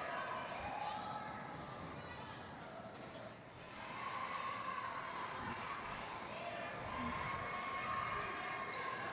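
A crowd of spectators chatters nearby.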